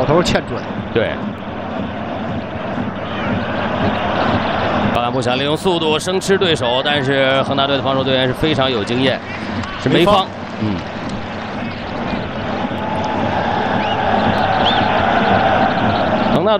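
A large stadium crowd roars and cheers steadily outdoors.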